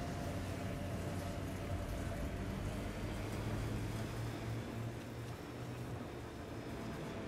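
A vehicle engine rumbles steadily as it climbs.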